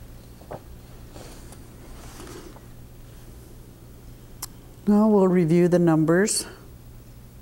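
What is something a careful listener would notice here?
A middle-aged woman speaks into a microphone.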